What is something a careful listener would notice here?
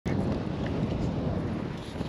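A fishing reel clicks.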